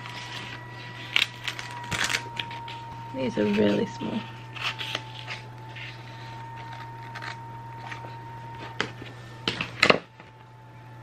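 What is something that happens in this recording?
Plastic sheet crackles and rustles as hands bend it.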